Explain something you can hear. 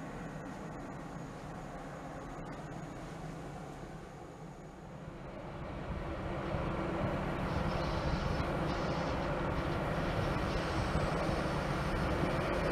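A diesel freight locomotive rumbles as it approaches and grows louder.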